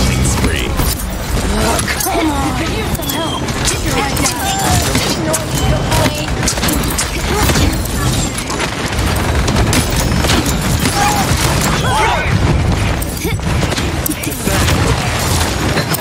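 Explosions and magical blasts boom and crackle.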